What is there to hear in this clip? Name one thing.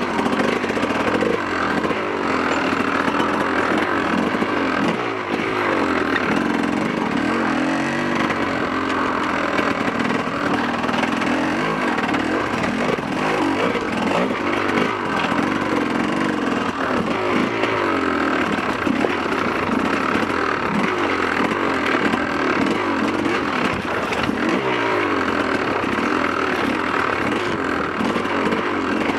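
Tyres crunch over loose rocks and gravel.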